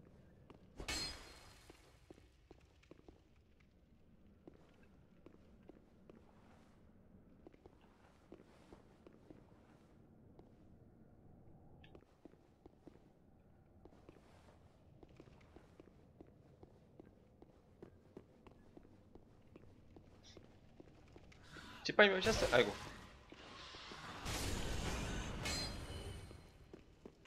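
Footsteps clank softly on stone.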